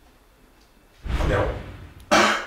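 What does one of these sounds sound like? A man groans and exclaims in reaction after drinking.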